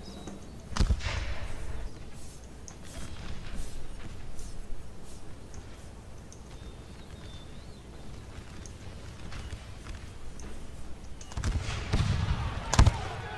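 Musket shots pop near and far.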